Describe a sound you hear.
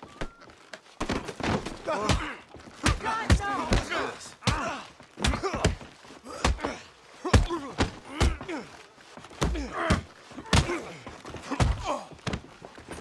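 Fists thud in a brawl, blow after blow.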